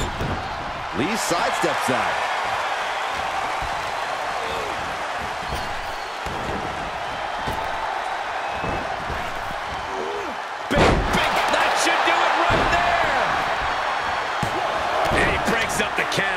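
A large crowd cheers and roars steadily in a big arena, swelling louder partway through.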